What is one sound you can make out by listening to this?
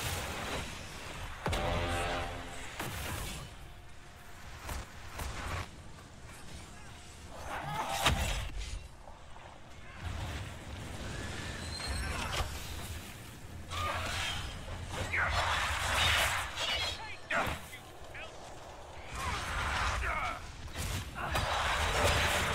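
Magic blasts crackle and boom in a fight.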